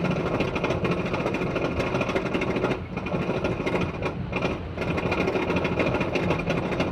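A roller coaster lift chain clanks and rattles steadily as the car climbs.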